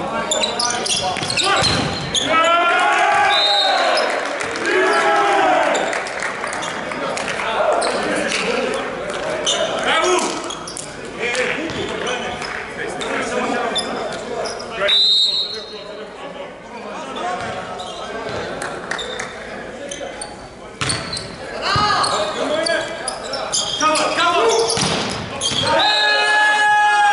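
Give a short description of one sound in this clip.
A volleyball thumps as players hit it.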